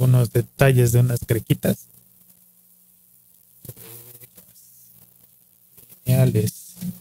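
A man speaks close to a microphone in an animated way, in short bursts.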